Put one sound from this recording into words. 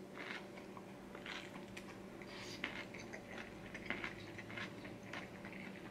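A man slurps noodles loudly and wetly up close.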